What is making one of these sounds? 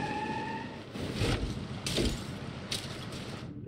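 A car splashes heavily into water.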